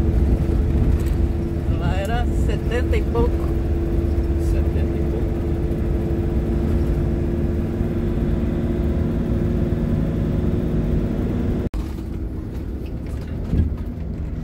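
Tyres roll over rough tarmac.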